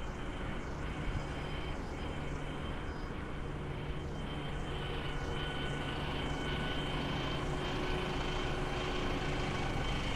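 A bus engine hums as it passes close by.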